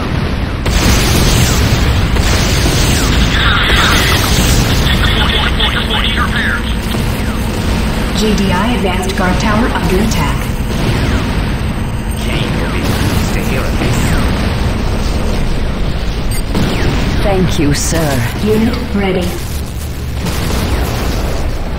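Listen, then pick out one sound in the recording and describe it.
Electricity crackles and buzzes loudly.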